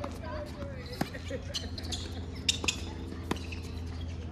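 Paddles sharply strike a plastic ball back and forth outdoors.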